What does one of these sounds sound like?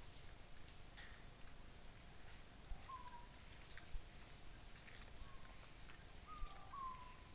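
Wild pigs snuffle and root through dry leaf litter close by.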